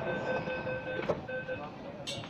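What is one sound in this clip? Sliding train doors close with a thud.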